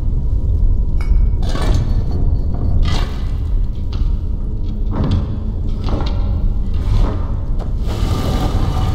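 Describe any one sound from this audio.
Heavy stone rings turn with grinding clunks.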